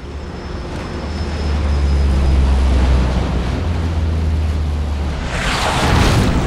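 Aircraft engines drone low and heavy overhead.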